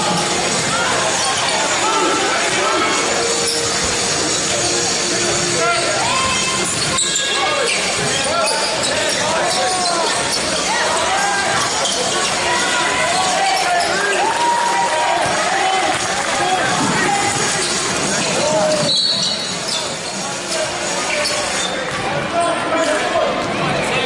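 Players and spectators shout and call out in the hall.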